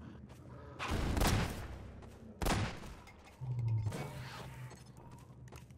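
Gunfire crackles in loud bursts.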